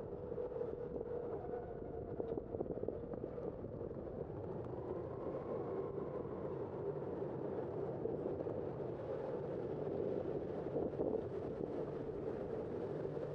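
A car drives steadily along a city street with a low rolling rumble.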